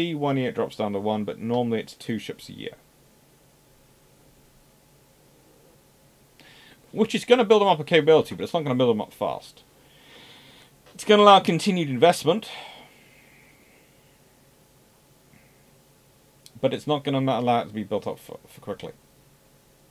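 A man talks calmly and closely into a microphone, in bursts with pauses.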